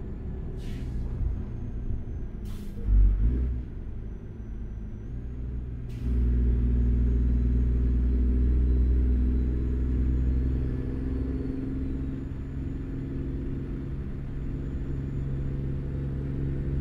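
A truck engine rumbles steadily and grows louder.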